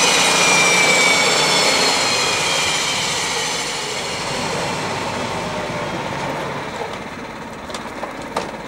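A propeller aircraft engine whines loudly close by, then slowly winds down.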